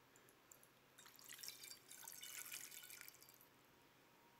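Water pours into a basin.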